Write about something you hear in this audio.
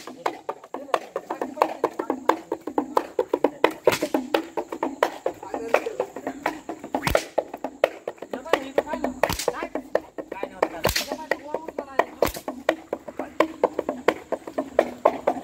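A small hand drum beats in a fast, steady rhythm.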